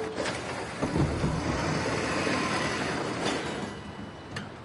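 A bus door hisses and slides open.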